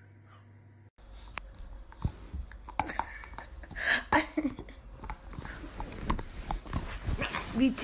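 Dogs rustle and scuffle on soft bedding.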